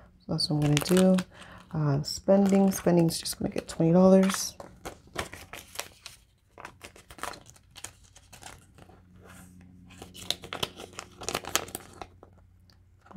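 Paper banknotes rustle and crinkle as they are handled.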